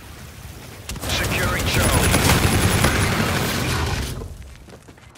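Rapid gunfire rattles loudly and close.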